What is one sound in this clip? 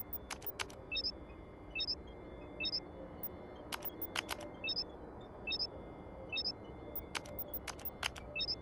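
A keypad beeps in short electronic tones as buttons are pressed.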